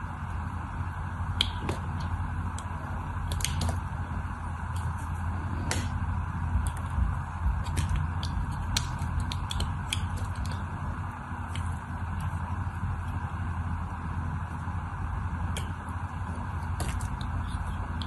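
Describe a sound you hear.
A knife blade scrapes and carves through soft soap.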